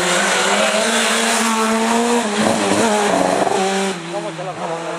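A rally car engine roars loudly as it speeds past.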